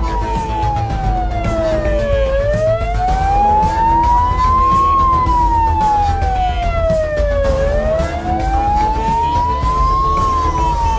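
An ambulance siren wails, rising and falling slowly.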